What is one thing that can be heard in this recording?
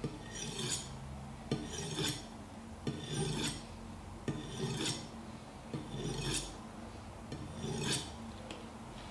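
A knife blade scrapes in repeated strokes against a sharpener, with a ringing hiss.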